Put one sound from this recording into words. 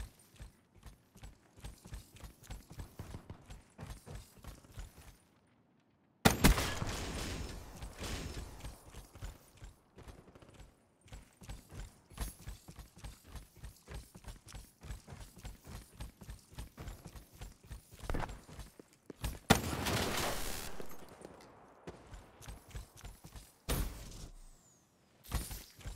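Running footsteps thud quickly and steadily.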